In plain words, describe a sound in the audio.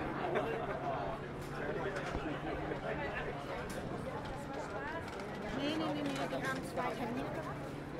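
Footsteps scuff on cobblestones.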